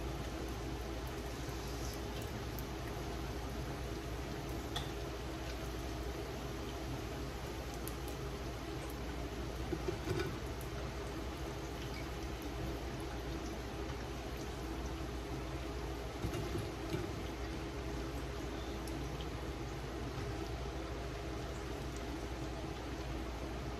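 A metal spatula scrapes and clinks against a frying pan.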